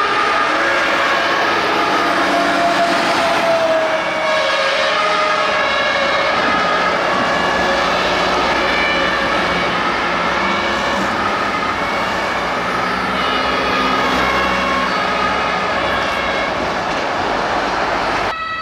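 Several emergency sirens wail loudly and steadily nearby, overlapping one another.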